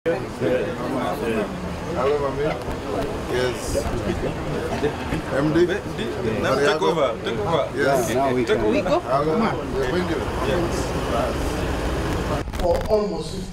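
A crowd of men and women chatter and talk over one another close by.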